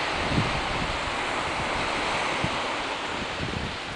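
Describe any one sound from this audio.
Small waves wash onto a sandy shore nearby.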